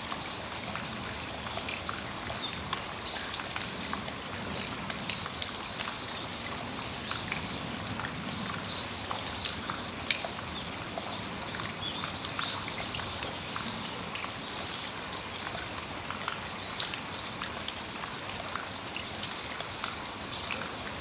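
Rain patters steadily on a metal roof and awning.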